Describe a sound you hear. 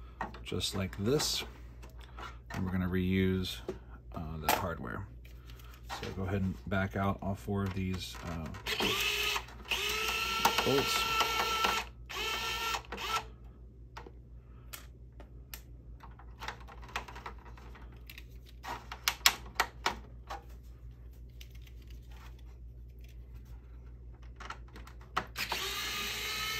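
Hard plastic parts knock and click as they are handled.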